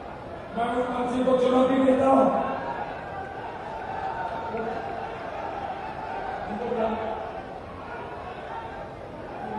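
A middle-aged man speaks forcefully into a microphone, heard through loudspeakers.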